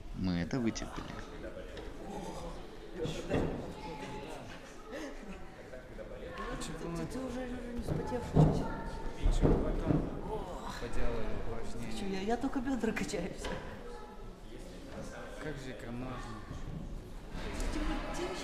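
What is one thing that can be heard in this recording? A young man talks with animation close by, in a large echoing hall.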